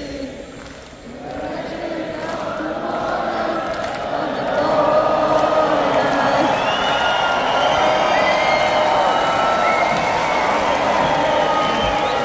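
A large crowd cheers and roars in a big echoing arena, swelling louder.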